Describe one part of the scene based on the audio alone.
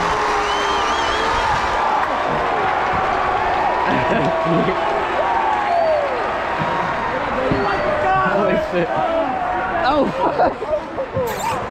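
Young men and women whoop and shout excitedly close by.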